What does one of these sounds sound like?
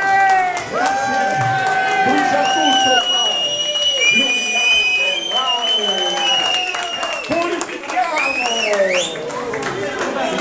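A live band plays lively music.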